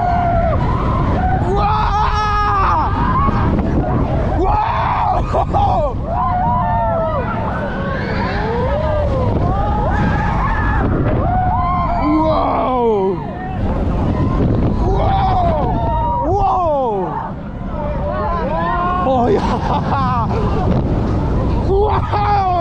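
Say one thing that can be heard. Coaster wheels screech in shrill, bending tones on the curves.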